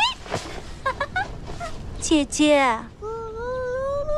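A young woman speaks sharply and scolds.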